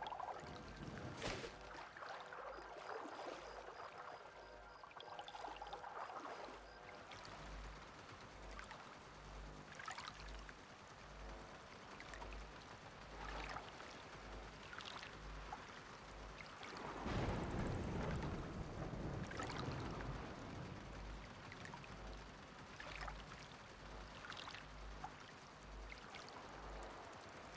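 Water laps gently nearby.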